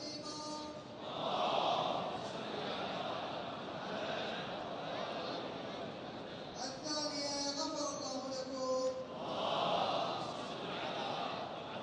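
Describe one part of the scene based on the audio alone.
A large crowd of men chants together in a loud, echoing surge.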